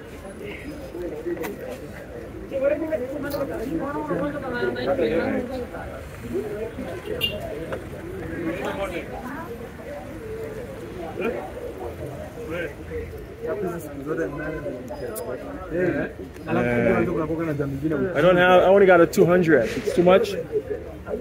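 Street traffic and a crowd murmur in the background.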